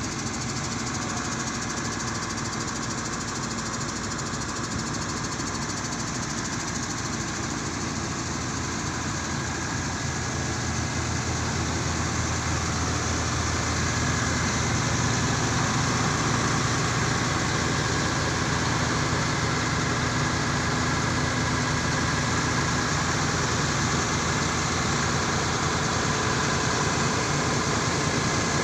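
A diesel engine hums steadily close by, growing louder partway through.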